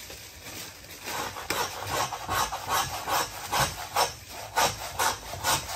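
A hand saw cuts through bone with quick, steady strokes.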